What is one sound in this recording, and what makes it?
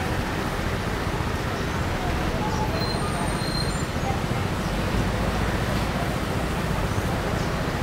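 A tram rumbles past close by.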